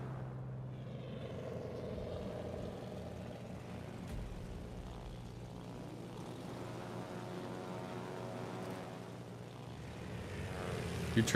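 Propeller aircraft engines drone steadily.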